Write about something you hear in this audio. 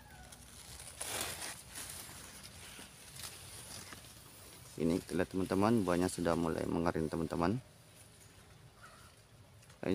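Corn leaves rustle softly in a light breeze.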